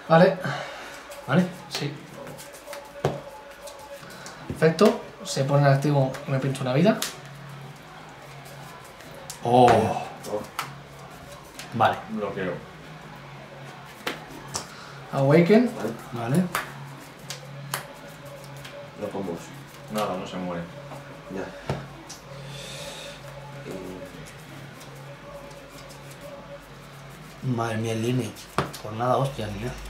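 Playing cards are shuffled and laid down on a table with soft taps.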